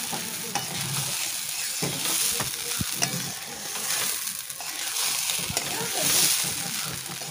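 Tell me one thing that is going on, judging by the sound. A wooden spatula stirs dry rice in a metal wok.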